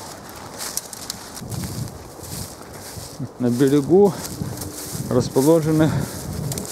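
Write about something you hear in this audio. Footsteps crunch through dry grass and leaves.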